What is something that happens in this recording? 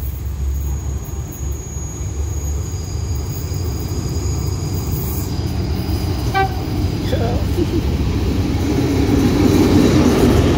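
A diesel train rumbles closer, growing steadily louder.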